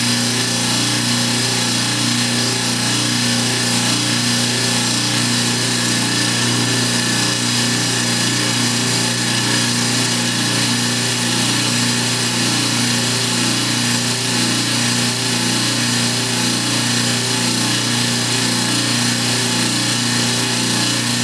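A power saw hums steadily and grinds through stone.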